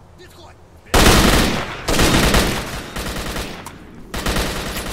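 Loud shotgun blasts boom one after another.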